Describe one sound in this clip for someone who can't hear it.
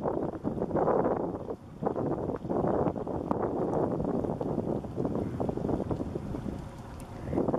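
Small waves lap gently against rocks and ice.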